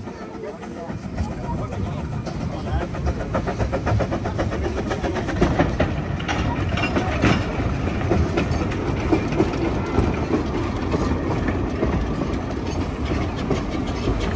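Steam locomotives chuff and hiss as they approach and pass close by, growing louder.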